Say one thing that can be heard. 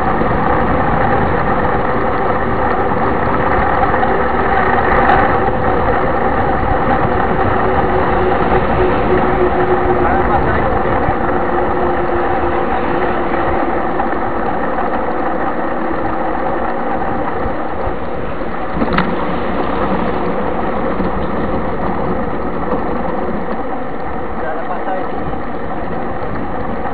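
Knobby bicycle tyres hum on asphalt.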